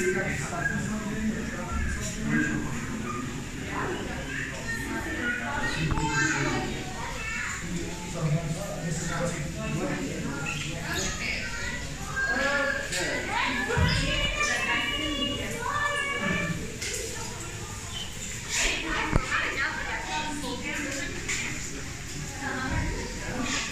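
A young child babbles and chatters excitedly.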